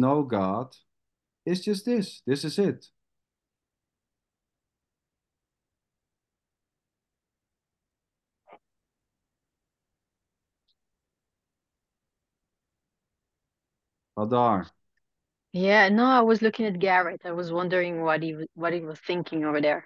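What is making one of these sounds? A woman talks with animation over an online call.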